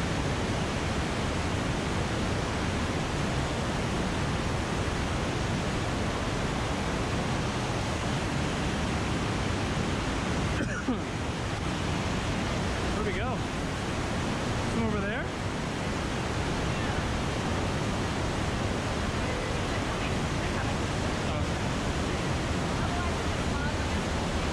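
A waterfall roars and rushes loudly into a pool close by.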